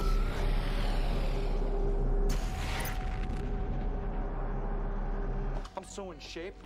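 A deep electric whoosh swells and bursts.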